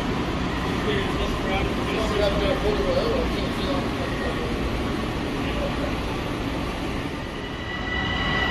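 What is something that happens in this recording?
A train rolls slowly into an echoing underground station with a low rumble.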